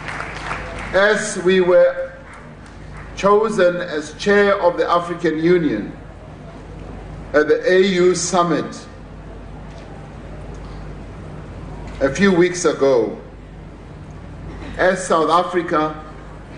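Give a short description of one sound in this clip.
A man speaks slowly and formally into a microphone over a loudspeaker, with pauses between phrases.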